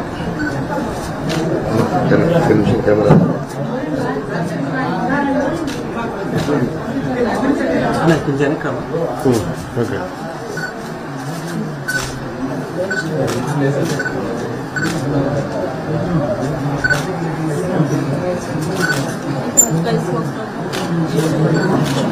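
A woman speaks tearfully and close by.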